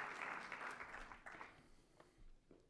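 An audience applauds in a large hall, then the applause fades out.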